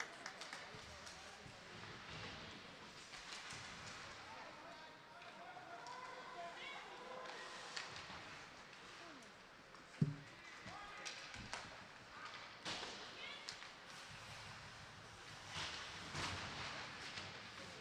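A crowd murmurs and cheers in an echoing rink.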